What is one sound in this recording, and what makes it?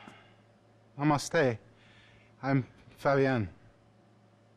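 A younger man answers calmly, close by.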